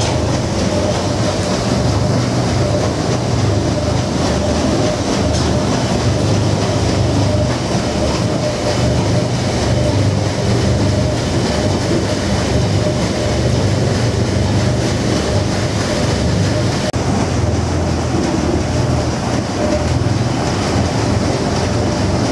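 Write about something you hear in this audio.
Rain patters steadily on a window pane.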